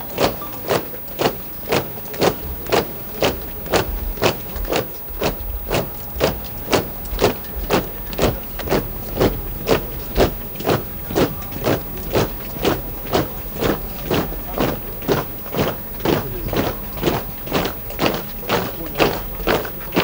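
Soldiers march past in step, their boots stamping in an even beat.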